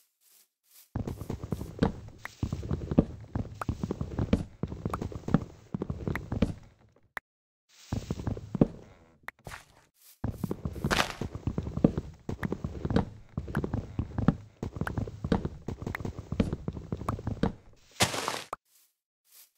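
An axe chops at wood with repeated hollow knocks.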